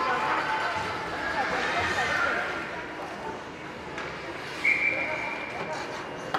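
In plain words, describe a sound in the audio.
A crowd chatters in a large echoing arena.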